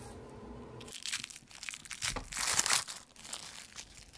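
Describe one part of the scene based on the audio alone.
Plastic wrap crinkles and rustles close by.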